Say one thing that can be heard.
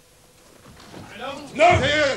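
A man shouts loudly and angrily nearby.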